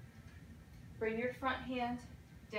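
A woman speaks calmly into a nearby microphone.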